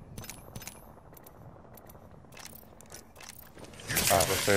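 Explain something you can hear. Short, quick clicks tick.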